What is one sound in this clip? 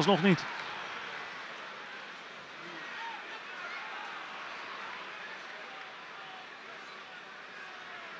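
A large stadium crowd murmurs and chants steadily in the distance.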